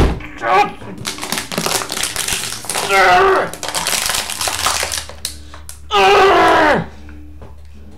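A young man shouts and screams in anguish close to a microphone.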